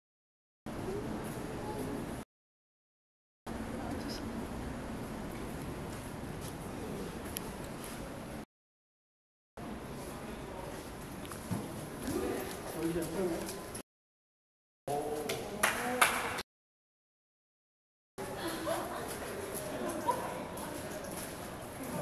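Young women laugh close by.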